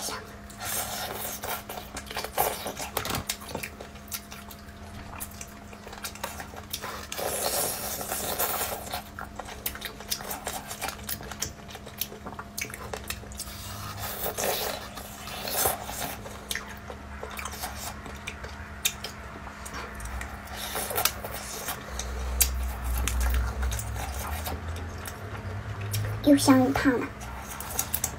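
A young woman chews food wetly close to a microphone.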